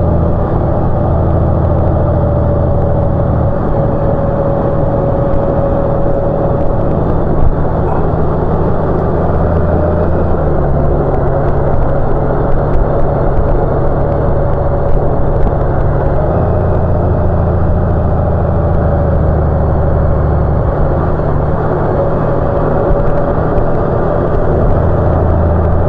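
A motorcycle engine hums steadily, changing pitch as it shifts gears.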